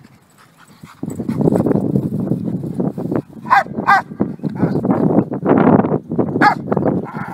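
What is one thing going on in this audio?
A man speaks calmly to a dog.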